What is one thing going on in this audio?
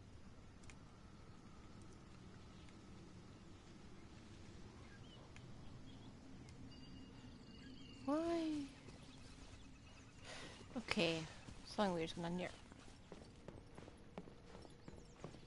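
Footsteps patter softly through grass.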